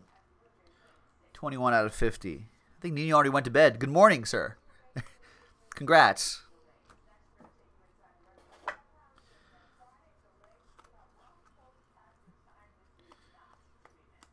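Trading cards shuffle and slide against each other in hands.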